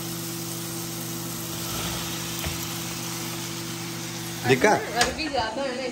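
Potato chunks tumble into a pan with a clatter.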